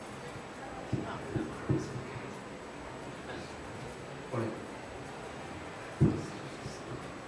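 A microphone knocks and thumps as it is handled.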